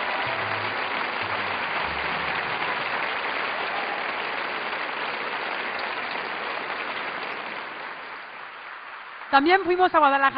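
A large audience applauds in an echoing hall, slowly fading.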